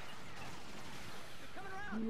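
A blaster fires laser shots.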